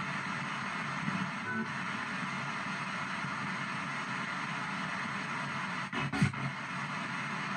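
Brief fragments of voices and tones burst from a radio speaker between the static.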